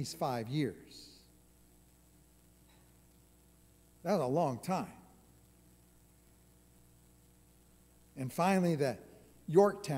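An elderly man speaks slowly and deliberately through a microphone, with long pauses.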